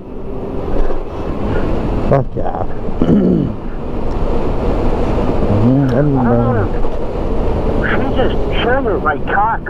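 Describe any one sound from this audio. Wind rumbles loudly and steadily.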